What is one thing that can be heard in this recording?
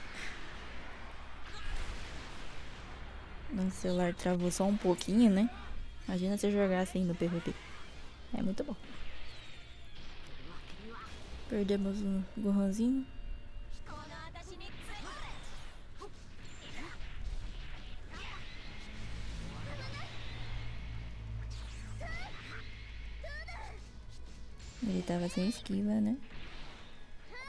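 Energy blasts and impacts crash and whoosh in a fast battle.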